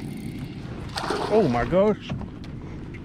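A fish splashes on the water's surface close by.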